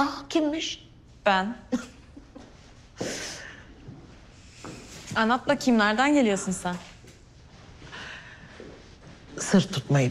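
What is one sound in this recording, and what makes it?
A middle-aged woman talks warmly nearby.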